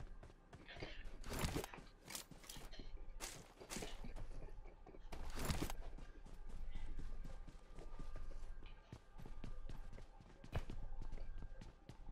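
Footsteps patter quickly on dirt and wooden floors.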